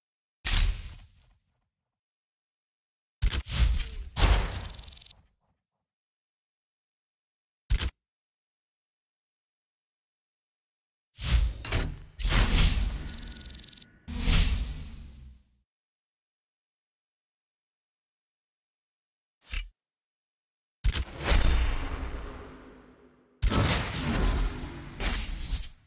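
Game menu sound effects whoosh and chime as rewards tally up.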